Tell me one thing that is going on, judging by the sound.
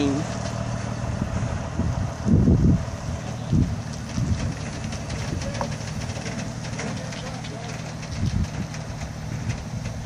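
A heavy truck engine rumbles steadily close by.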